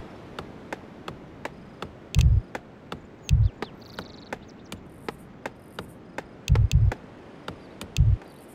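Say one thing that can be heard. Hammers knock steadily on wood.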